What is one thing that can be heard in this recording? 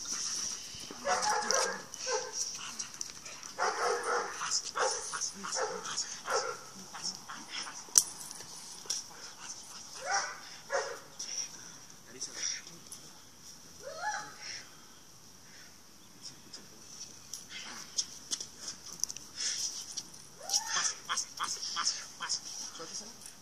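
A dog growls and barks.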